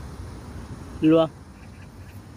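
A small dog barks once, close by.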